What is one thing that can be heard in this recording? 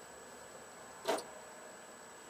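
A battery thuds down into a metal tray.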